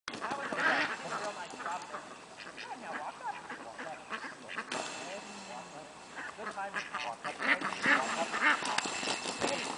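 Geese honk and cackle nearby, outdoors.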